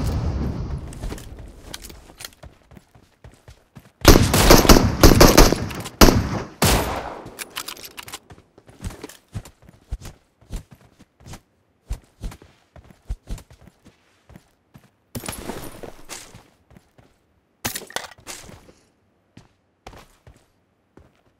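Footsteps crunch quickly over ground.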